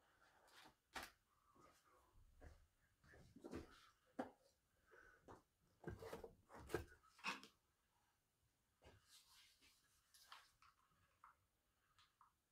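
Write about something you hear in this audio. Objects clatter and rustle as someone handles them close by.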